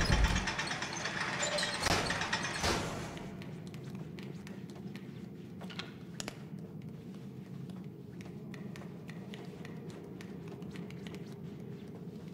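Small footsteps patter quickly on a hard floor.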